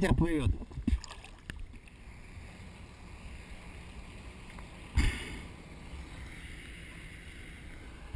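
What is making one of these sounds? Small waves lap and slosh on a choppy sea outdoors.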